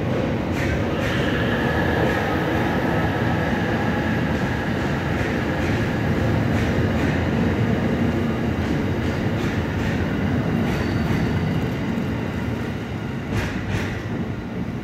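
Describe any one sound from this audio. Steel wheels clack over rail joints.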